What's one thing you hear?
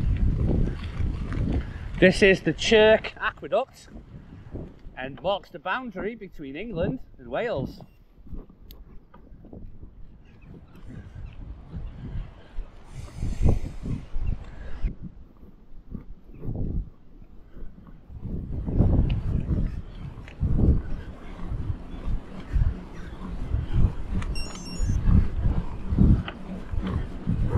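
Mountain bike tyres roll over a wet paved path.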